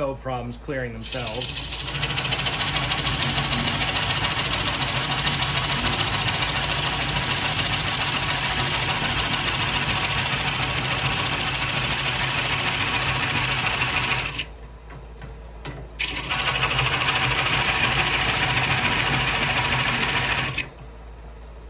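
A gouge scrapes loudly against spinning wood, hissing as shavings fly.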